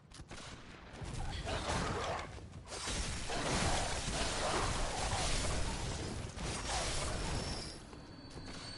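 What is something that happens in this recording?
Blades slash and strike flesh with wet thuds.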